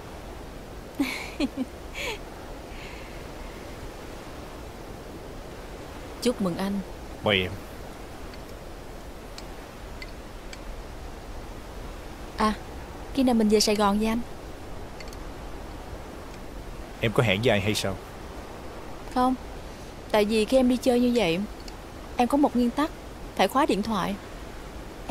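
A young woman speaks playfully, close by.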